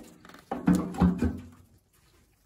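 A wrench clinks and scrapes against metal.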